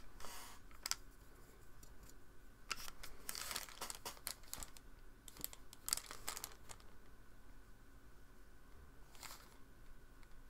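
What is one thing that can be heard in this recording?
A paintbrush swishes and taps softly on paper.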